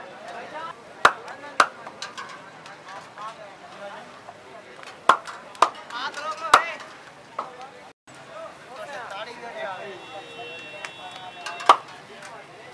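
Metal ladles clink against a pan.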